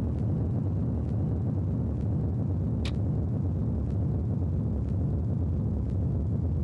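A jet airliner's engines rumble steadily as it rolls along a runway.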